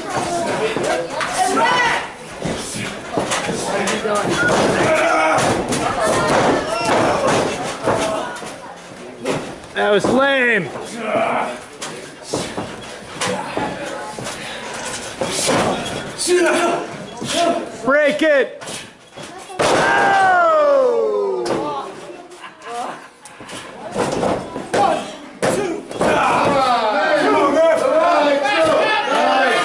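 A crowd of spectators shouts and cheers.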